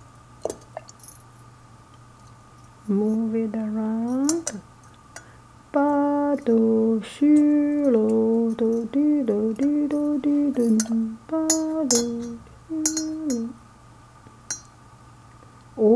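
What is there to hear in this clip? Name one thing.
A metal chain rattles against the rim of a teapot.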